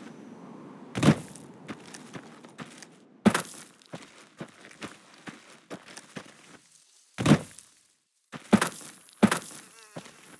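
Heavy thuds sound as someone lands on rocky ground.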